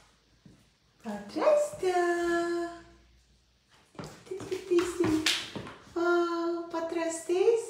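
A young girl speaks in a high, sing-song voice close by.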